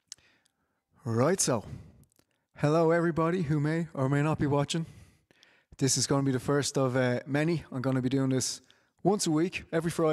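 A man sings into a microphone, heard through an online call.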